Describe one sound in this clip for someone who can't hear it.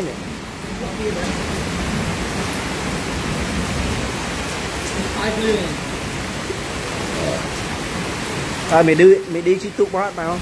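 Heavy rain pours down and splashes on flooded ground.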